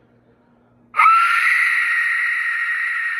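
A shrill whistle blows loudly and steadily.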